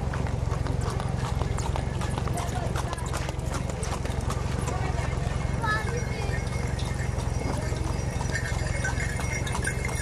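Cart wheels roll and rattle over a road.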